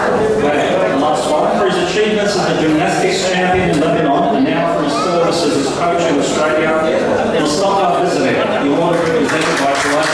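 A middle-aged man reads out calmly through a microphone.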